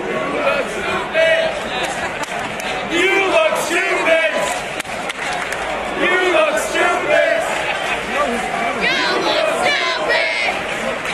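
A man close by shouts and cheers.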